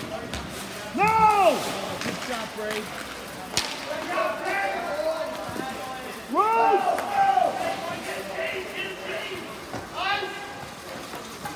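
Young players shout across the rink outdoors.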